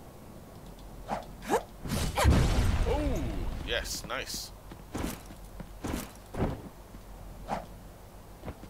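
Sword slashes swish and clang in a video game.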